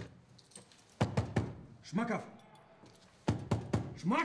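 A fist knocks hard on a wooden door.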